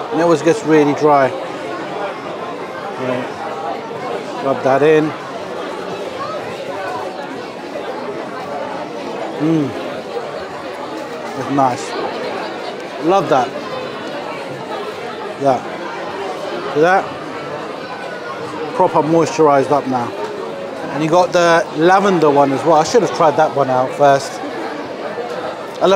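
A crowd murmurs steadily in a large room.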